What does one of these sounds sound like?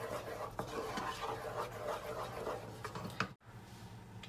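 A wooden spoon stirs a thick sauce in a pan.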